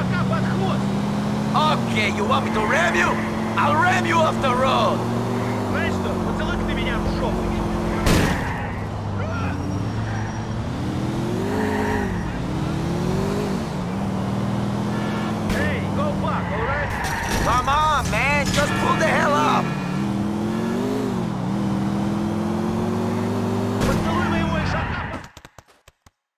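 A car engine roars and revs as it drives fast.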